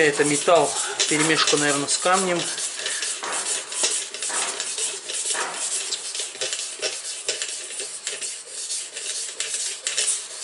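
A whetstone scrapes back and forth along a knife blade in quick, repeated strokes.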